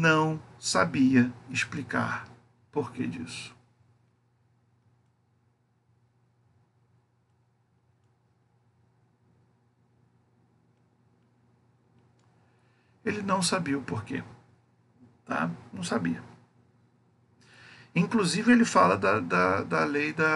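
A man speaks calmly into a close microphone, explaining with pauses.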